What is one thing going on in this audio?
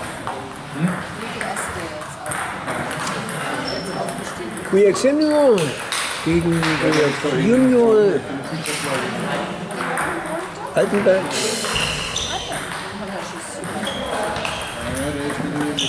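Table tennis balls click against paddles and a table in a large echoing hall.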